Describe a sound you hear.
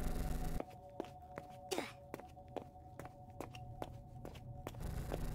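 Footsteps walk steadily on a hard floor.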